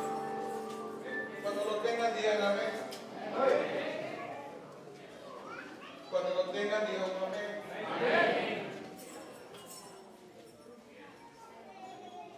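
A young man speaks with animation through a microphone and loudspeakers in a reverberant hall.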